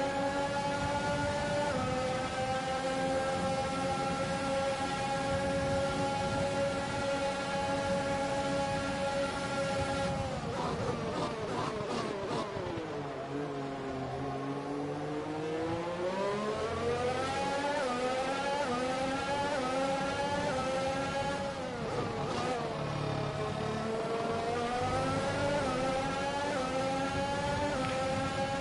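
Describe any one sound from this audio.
A racing car engine screams at high revs, drops sharply in pitch as it slows, then climbs again as it speeds up.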